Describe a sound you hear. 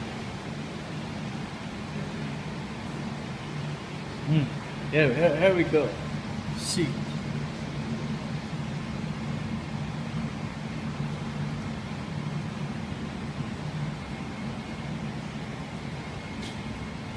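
A low, steady hum of aquarium equipment runs throughout.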